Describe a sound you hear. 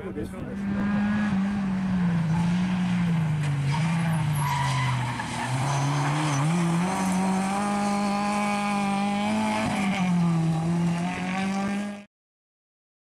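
A rally car engine roars loudly, revving up and down as the car speeds past.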